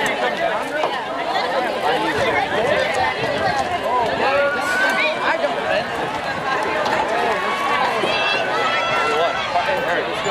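A large outdoor crowd chatters and calls out all around.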